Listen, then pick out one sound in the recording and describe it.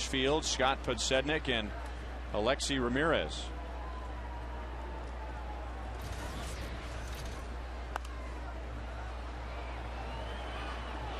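A crowd murmurs steadily in a large open stadium.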